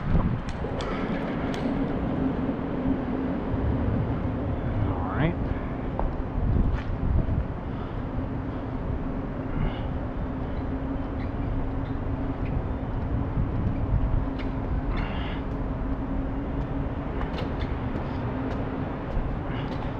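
Bicycle tyres roll over a hard floor.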